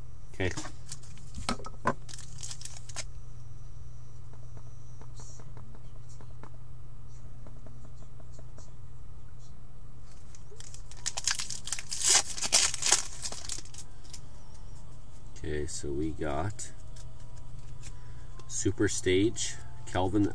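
Trading cards rustle and slide against each other in hands.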